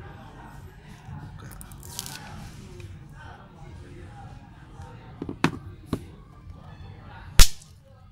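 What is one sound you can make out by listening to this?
A thin glass sheet taps and clicks against a phone.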